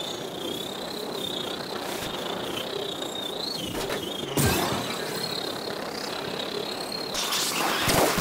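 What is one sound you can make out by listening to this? A hover bike's engine whines steadily as it speeds along.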